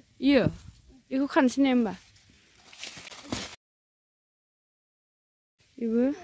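Leaves rustle as a hand pulls a branch.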